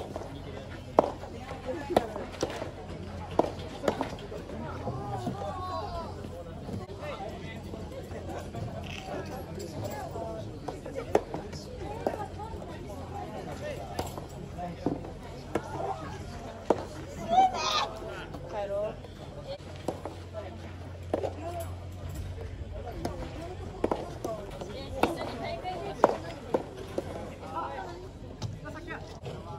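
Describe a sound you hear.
Tennis rackets strike a soft ball with sharp pops, back and forth.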